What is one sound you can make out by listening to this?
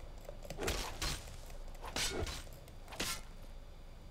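Fire magic whooshes and crackles.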